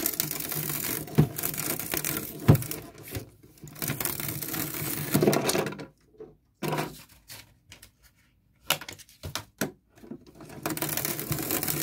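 A hand-cranked shredder grinds and cracks as a disc is fed through it.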